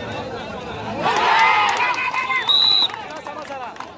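A crowd of men cheers and shouts loudly.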